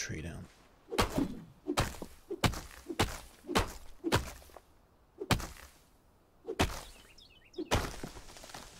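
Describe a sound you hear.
An axe chops into wood with sharp, repeated thuds.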